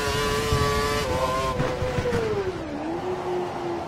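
A Formula One V8 engine drops in pitch as it downshifts for a corner.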